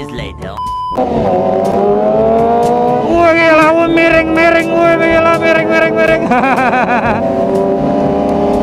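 A motorcycle engine revs and climbs in pitch as the motorcycle speeds up.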